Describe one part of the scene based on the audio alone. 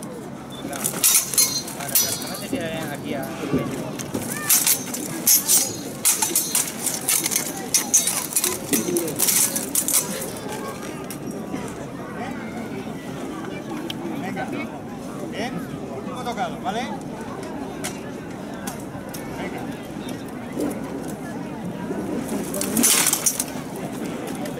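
Steel swords clash and clang against armour.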